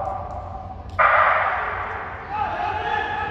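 A starting pistol fires with a sharp bang that echoes through a large hall.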